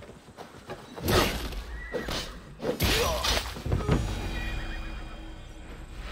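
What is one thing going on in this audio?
Blows land with heavy thuds in a scuffle.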